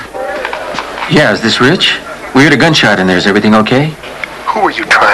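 A man talks into a telephone.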